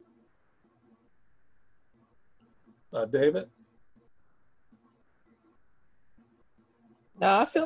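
A middle-aged man speaks calmly over an online call.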